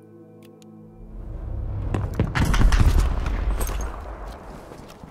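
A heavy explosion booms and rumbles, then slowly fades.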